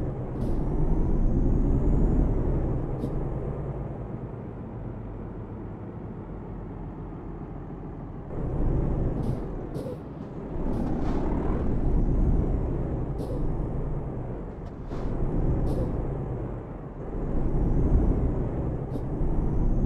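A truck engine rumbles steadily, swelling and easing as it speeds up and slows down.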